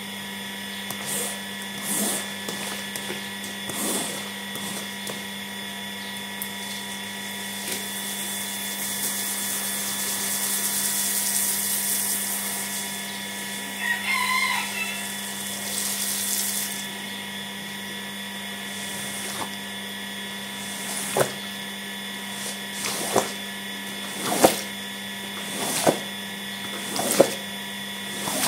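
A rubber squeegee scrapes across a wet mat.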